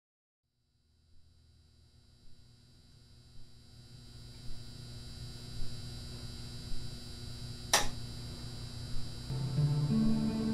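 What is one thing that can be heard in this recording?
Music plays from a spinning record.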